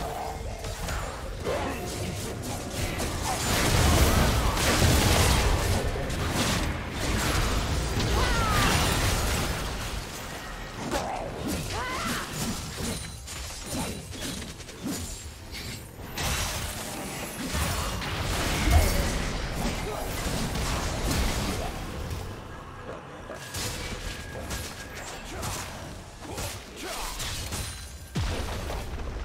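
Magic blasts whoosh, crackle and boom in a fast fight.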